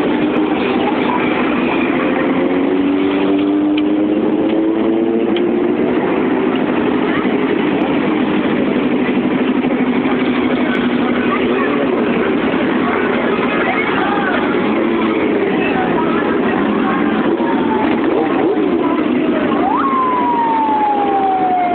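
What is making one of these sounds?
Motorcycles ride past one after another.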